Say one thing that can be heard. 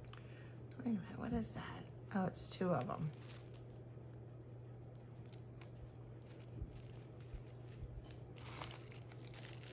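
Plastic packaging crinkles and rustles as hands handle it.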